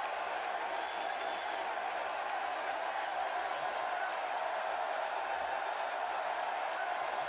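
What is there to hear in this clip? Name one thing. A large crowd cheers and roars steadily in an arena.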